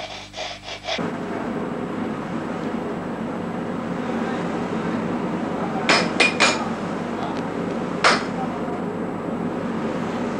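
A fire roars steadily in a furnace.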